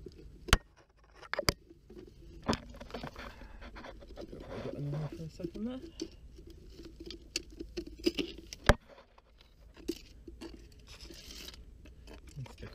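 A metal pole taps and scrapes against rocks close by.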